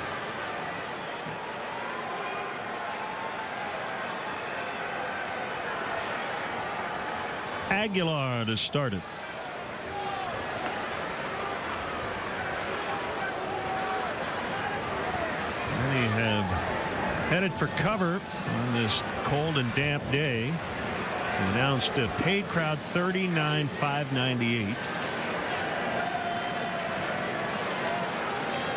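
A stadium crowd murmurs softly in the background.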